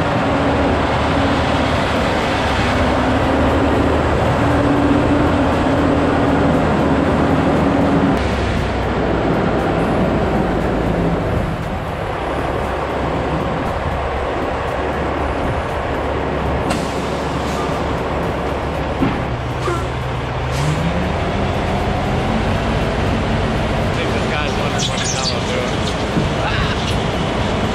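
A truck engine rumbles steadily, shifting pitch as it works.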